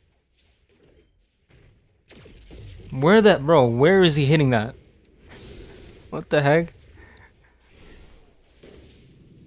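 Magic blasts whoosh and crackle in short bursts.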